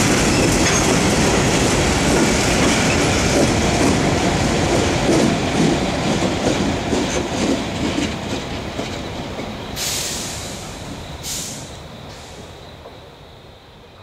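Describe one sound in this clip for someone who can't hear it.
A locomotive engine roars as it passes and fades away.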